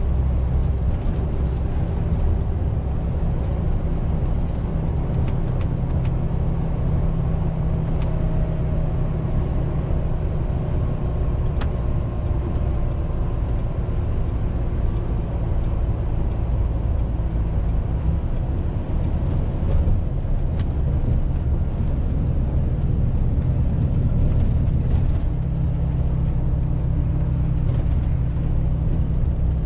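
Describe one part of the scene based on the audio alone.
Tyres hiss and rumble on a wet road.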